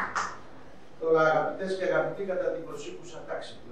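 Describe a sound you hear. An older man speaks calmly to an audience.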